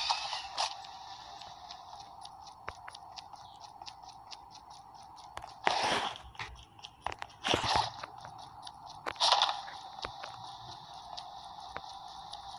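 Footsteps run quickly over dirt and pavement.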